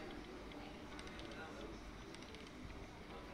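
A die rattles as it rolls.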